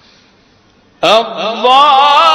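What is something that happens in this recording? A man chants in a long, wavering melodic voice through a microphone, in a large echoing hall.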